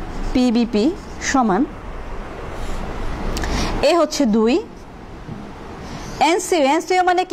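A young woman speaks clearly and steadily, as if teaching.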